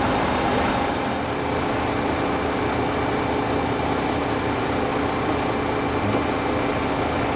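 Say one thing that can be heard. A crane engine rumbles steadily.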